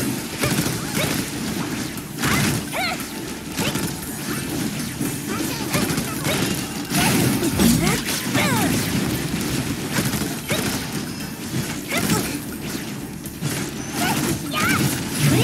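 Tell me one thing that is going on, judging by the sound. Video game sword slashes and energy blasts crackle rapidly.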